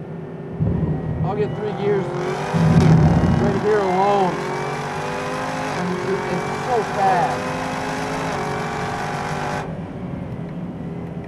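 A car engine roars steadily at high speed.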